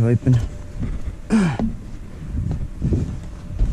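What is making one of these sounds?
A heavy metal lid creaks and clanks as it swings open.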